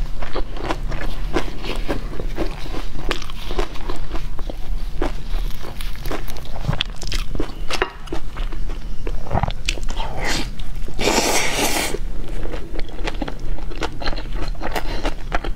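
Crisp food crunches and crackles close to a microphone.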